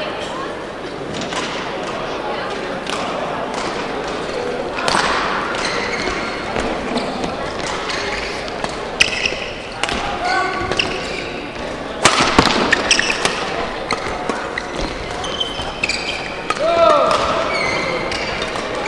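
Sports shoes squeak on a hard court floor.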